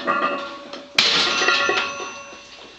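A barbell clanks down onto a metal rack.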